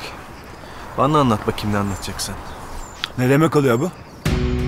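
A second man answers sharply nearby.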